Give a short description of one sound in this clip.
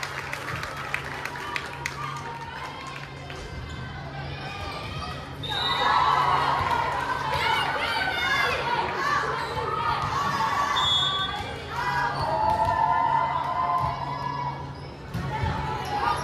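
A volleyball thuds against the floor and hands.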